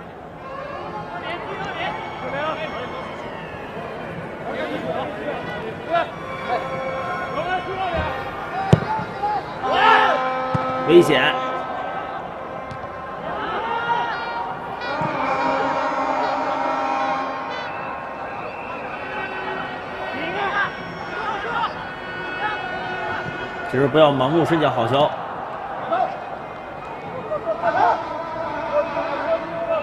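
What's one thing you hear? A large crowd chants and cheers across an open stadium.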